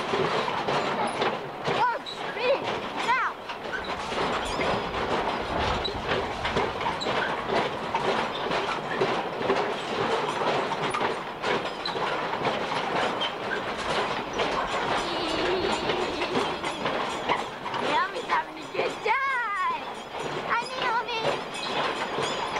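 A toddler girl babbles and squeals close by.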